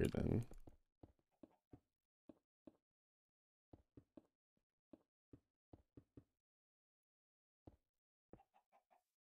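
Footsteps tap softly on grass.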